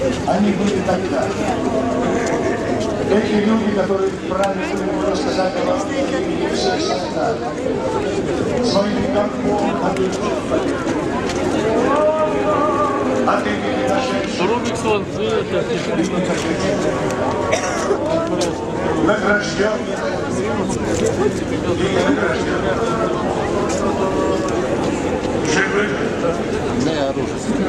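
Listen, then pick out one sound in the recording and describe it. A large crowd of men and women murmurs and chatters nearby outdoors.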